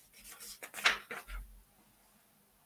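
Book pages rustle and flip.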